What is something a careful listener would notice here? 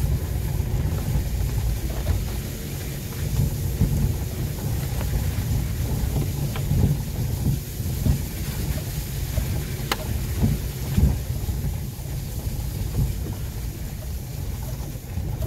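Tyres roll and bump over a wet, rough dirt road.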